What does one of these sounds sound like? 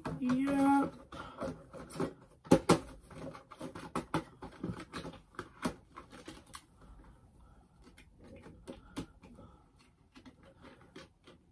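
Plastic packaging crinkles and rustles close by.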